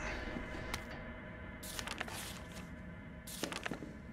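Paper pages rustle as a journal is leafed through.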